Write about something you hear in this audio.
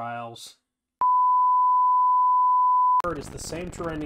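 A steady, high test tone sounds.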